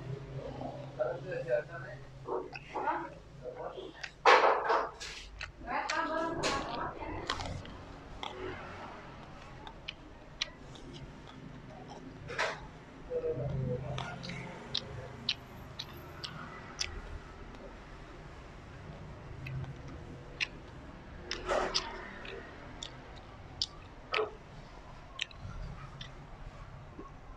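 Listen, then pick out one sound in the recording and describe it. A young man chews and slurps food close to a microphone.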